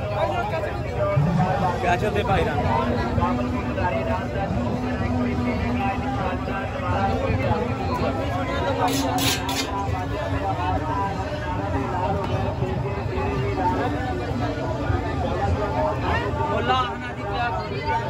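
A knife scrapes and taps on a metal griddle.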